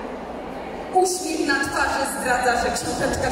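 A woman speaks loudly through a microphone and loudspeakers.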